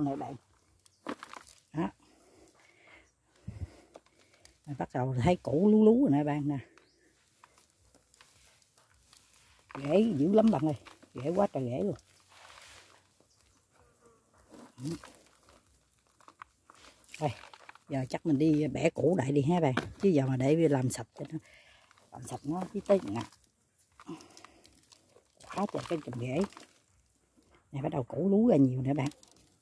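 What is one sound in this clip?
Dry roots and soil rustle and crackle as hands pull them apart.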